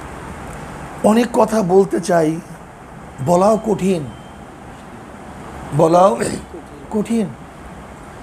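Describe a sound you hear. A middle-aged man speaks calmly into a clip-on microphone, in short phrases with pauses.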